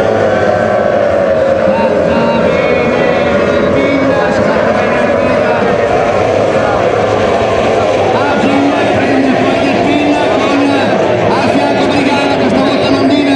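Powerboat engines roar at high speed across the water.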